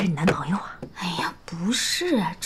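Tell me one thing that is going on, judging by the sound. A young woman answers briefly.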